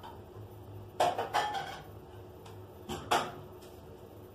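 Dishes and pans clatter and knock nearby.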